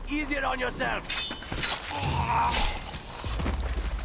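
A knife stabs with a struggling thud.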